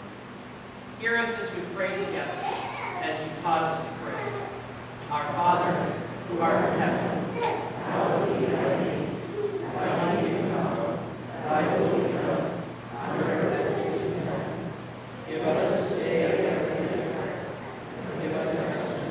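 A man speaks calmly through a microphone in a reverberant hall.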